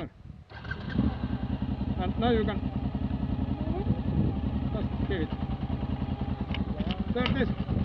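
A motorcycle engine idles close by with a steady rumble.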